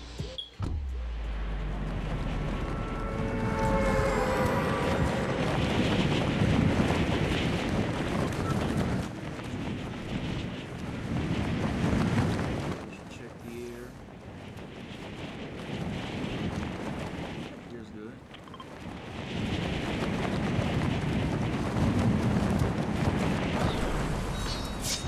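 Wind rushes loudly past during a fast fall through the air, swelling and easing.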